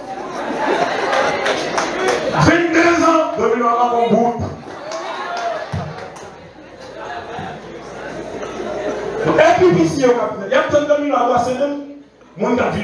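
A man preaches passionately into a microphone over loudspeakers in an echoing hall.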